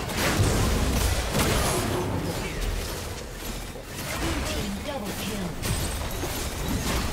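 Magic blasts and impacts crackle and burst in a video game battle.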